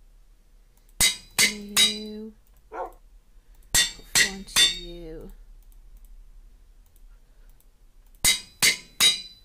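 Metal clangs on an anvil in bursts of three quick ringing strikes.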